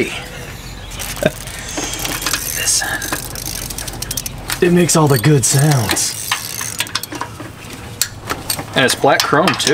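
Metal tools clink against an engine.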